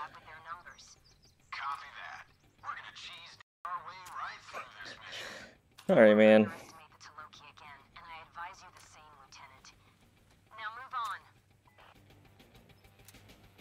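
Metal clicks and rattles as a rifle is handled and reloaded.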